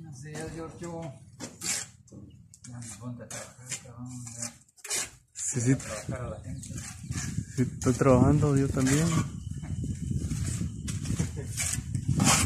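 A trowel scrapes plaster across a ceiling.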